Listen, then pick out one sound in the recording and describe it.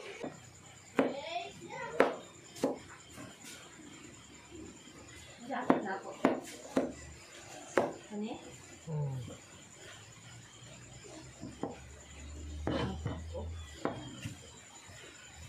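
A knife chops vegetables on a wooden board with sharp knocks.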